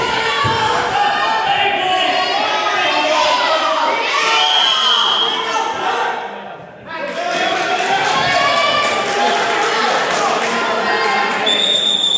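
A crowd of spectators shouts encouragement in a large echoing hall.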